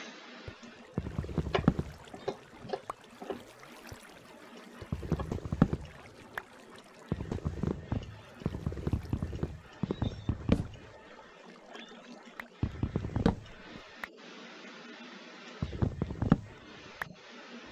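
Blocks of stone and wood are broken with quick tapping digging sounds.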